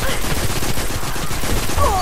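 Rapid gunfire rattles nearby.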